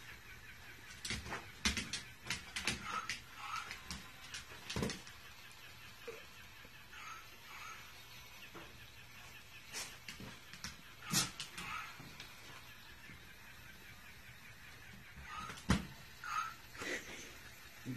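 A dog's claws click and tap on a hard floor.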